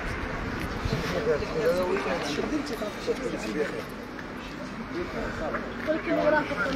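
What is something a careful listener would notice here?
Several men talk loudly nearby outdoors.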